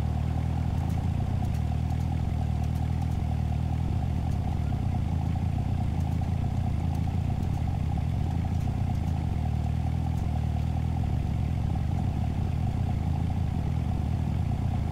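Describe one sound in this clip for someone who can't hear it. A sports car engine idles with a low, steady rumble.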